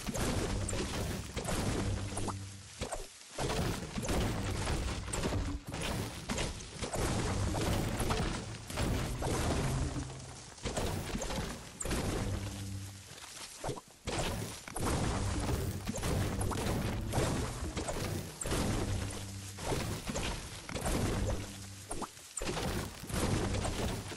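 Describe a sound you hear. A pickaxe strikes wood with repeated hard thuds.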